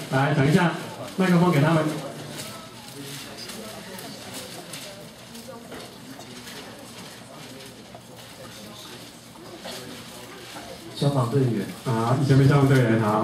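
A man speaks through a microphone in a large, echoing hall, in bursts with quieter pauses.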